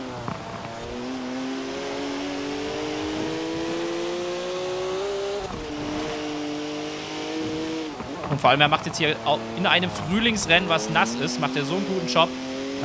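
A sports car engine roars at high revs, climbing in pitch through the gears and dropping as it slows.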